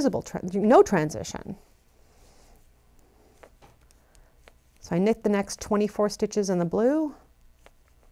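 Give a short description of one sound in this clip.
A woman speaks calmly into a close microphone.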